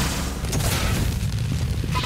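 A flamethrower roars in a video game.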